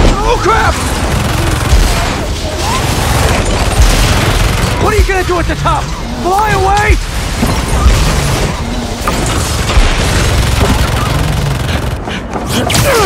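Explosions boom and rumble loudly.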